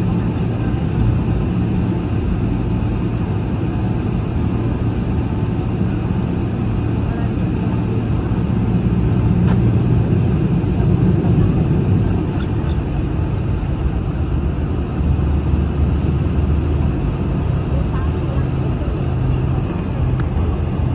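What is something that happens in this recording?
Wind rushes loudly against an airplane.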